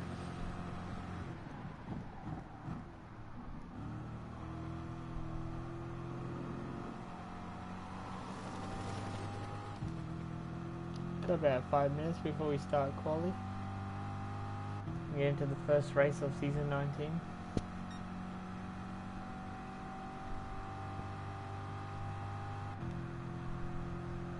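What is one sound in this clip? A race car engine roars steadily, its pitch rising through the gears and dropping when braking.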